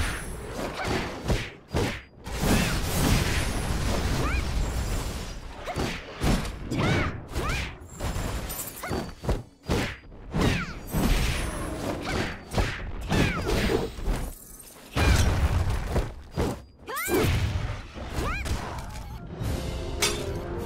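Magic blasts burst with loud booms.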